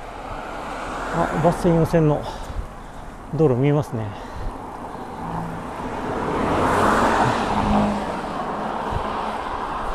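Cars drive past close by on a road, swelling and fading.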